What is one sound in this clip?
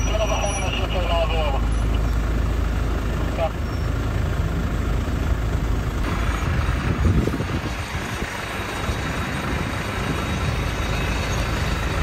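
An off-road vehicle's engine rumbles as it crawls slowly over rocks.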